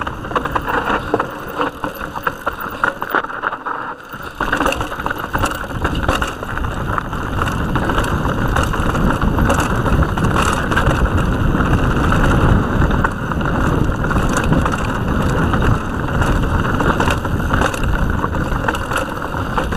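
A bicycle's frame and chain rattle over bumps.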